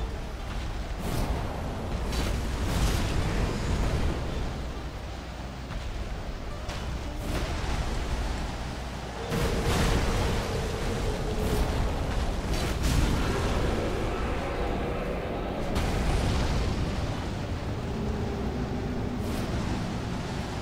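Swords clash and strike with sharp metallic hits.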